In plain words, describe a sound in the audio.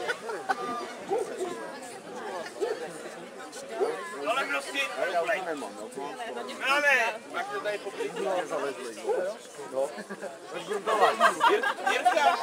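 A large crowd of adults and children chatters outdoors.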